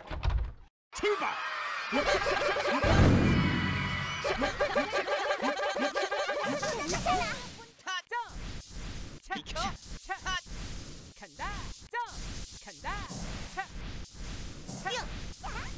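Upbeat game music plays.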